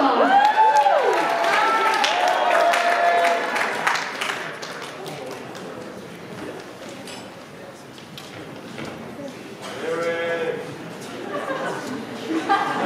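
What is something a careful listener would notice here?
A group of young performers make sliding, swooping vocal sounds in a large hall.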